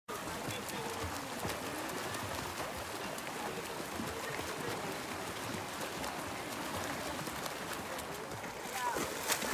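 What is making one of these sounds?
Pool water laps and ripples softly.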